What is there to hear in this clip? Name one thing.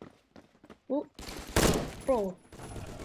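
Gunshots fire in quick succession.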